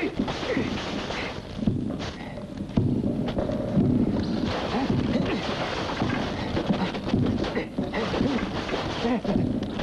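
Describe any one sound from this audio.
Staffs swish sharply through the air.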